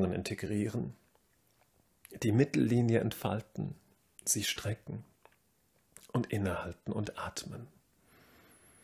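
A man speaks calmly and slowly, giving instructions close by.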